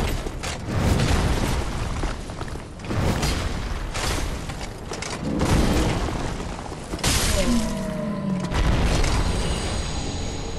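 Heavy blows and metal clashes ring out in a fight.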